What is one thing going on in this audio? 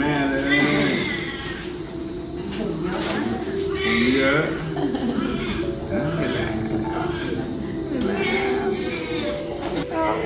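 A young man speaks warmly and cheerfully close by.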